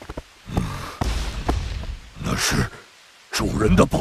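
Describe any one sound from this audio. A large beast snarls and growls loudly.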